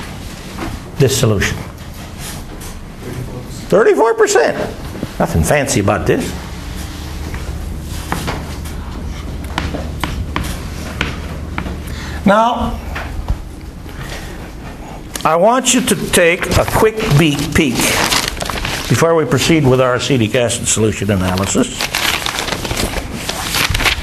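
An elderly man lectures, with a slight echo.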